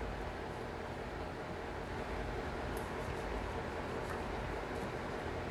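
Plastic false nails click lightly against each other.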